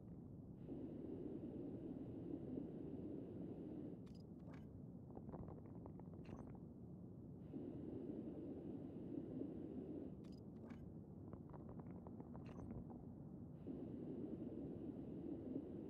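A spray can hisses in steady bursts.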